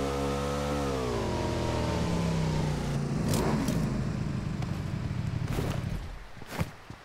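A motorbike engine revs and slows down, then idles with a low rumble.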